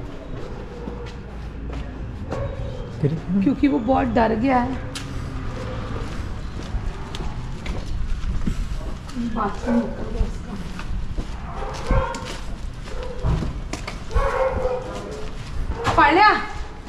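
Footsteps scuff along a paved lane.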